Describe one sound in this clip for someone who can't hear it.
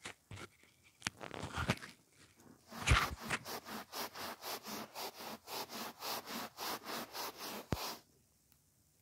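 A spray bottle squirts in quick repeated bursts.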